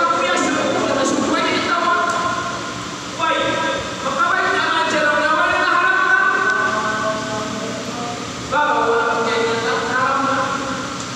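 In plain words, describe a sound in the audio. An elderly man speaks calmly into a microphone in an echoing room.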